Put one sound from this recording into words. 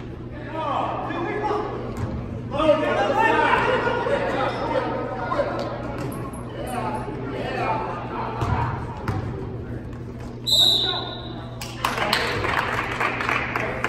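Sneakers squeak on the wooden court.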